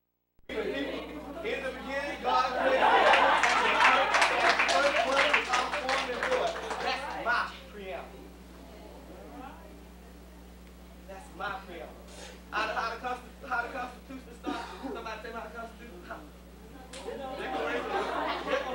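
A crowd of men and women chatters and talks at once.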